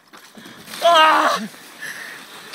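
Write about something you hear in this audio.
A man shouts loudly in shock.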